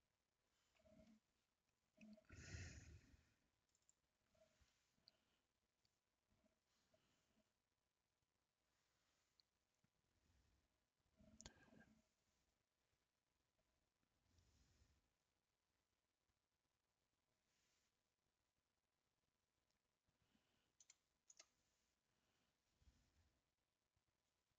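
A young man speaks calmly into a headset microphone, in short bursts.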